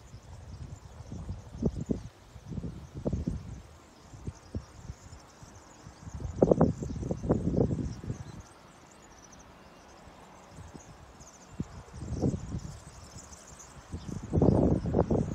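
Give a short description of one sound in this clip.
Wind gusts buffet loudly outdoors.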